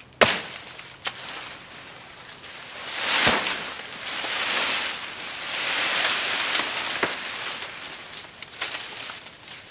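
A machete chops into a soft plant stalk with sharp thwacks.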